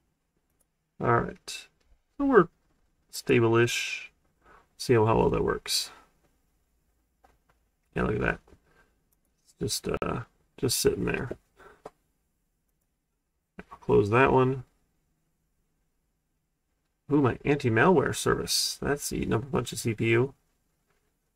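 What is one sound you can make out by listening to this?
A young man talks calmly into a nearby microphone, in short bursts with pauses.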